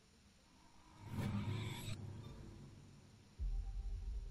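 A deep whoosh swells up suddenly and slowly fades.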